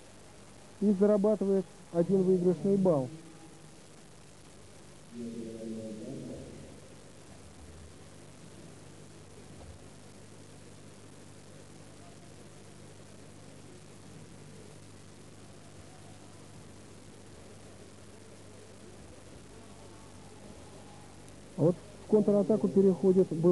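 A large crowd murmurs in a big echoing hall.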